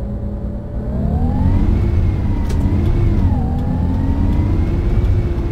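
A bus engine drones and whines, rising in pitch as it speeds up.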